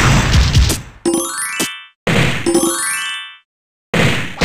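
Coins chime in rising runs.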